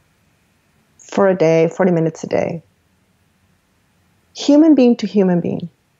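A woman talks with animation over an online call, in two short bursts.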